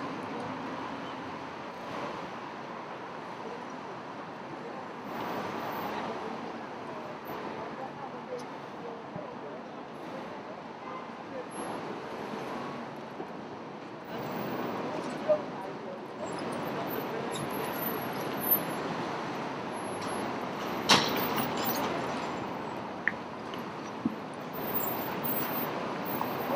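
City traffic rumbles steadily outdoors.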